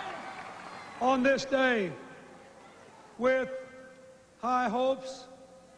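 A man speaks through loudspeakers to the crowd.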